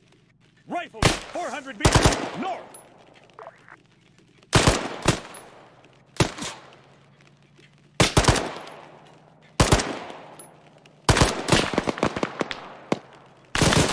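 A heavy machine gun fires short, loud bursts that boom and echo away.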